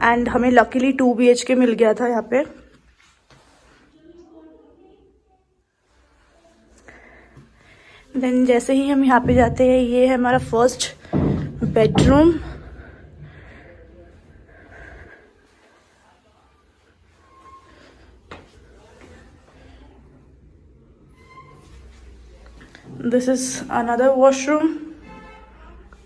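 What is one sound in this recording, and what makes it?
A young woman speaks calmly close by, in short bursts.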